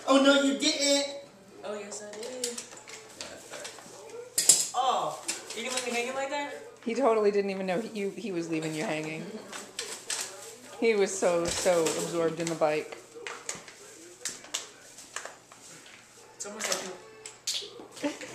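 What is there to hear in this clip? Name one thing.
Plastic wrapping crinkles as a gift is unwrapped.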